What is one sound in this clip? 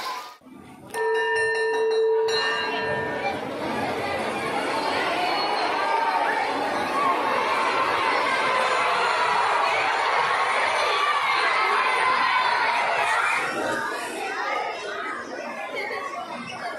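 Music plays through loudspeakers in a large hall.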